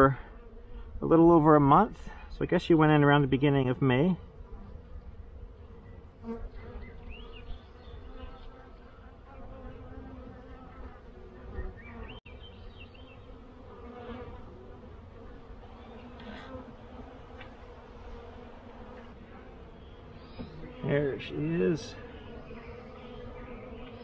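Honeybees buzz steadily close by.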